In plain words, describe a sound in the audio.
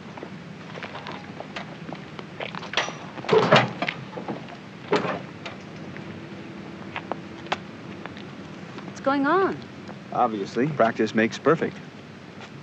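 Footsteps walk over hard ground.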